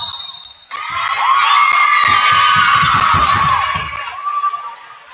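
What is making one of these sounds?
A crowd cheers loudly in a large echoing gym.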